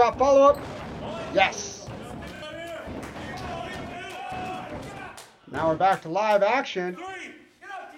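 Bodies thud onto a wrestling mat.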